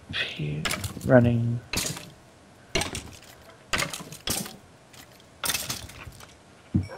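A sword strikes a creature with quick hits.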